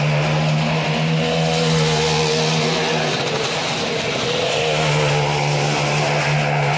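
A motorbike engine roars loudly as it circles a wooden wall, echoing.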